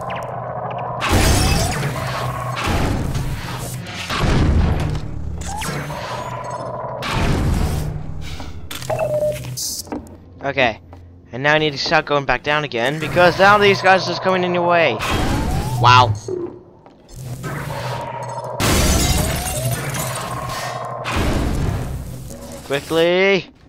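A weapon fires loud crackling electric blasts.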